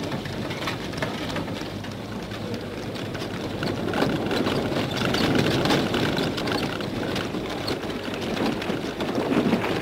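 A stagecoach rumbles past with hooves pounding.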